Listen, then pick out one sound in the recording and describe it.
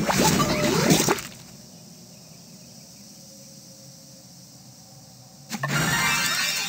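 Bright game sound effects chime and whoosh as a bubble is fired.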